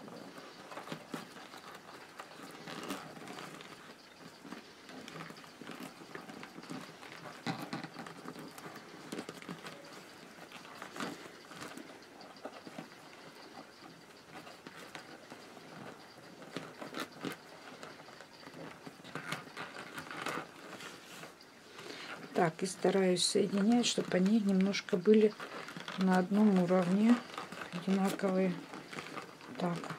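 Stiff paper tubes rustle and tap as hands weave them.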